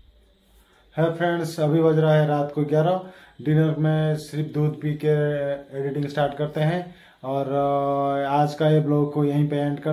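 A man talks calmly and close up.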